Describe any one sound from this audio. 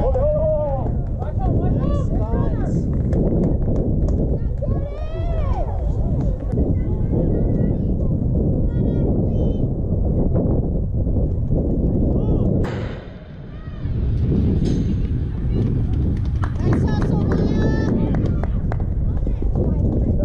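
Young girls shout and call out from across an open field.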